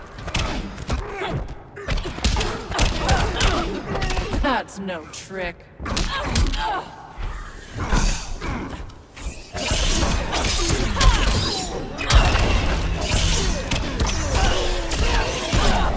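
Punches and kicks land with heavy thuds and cracks.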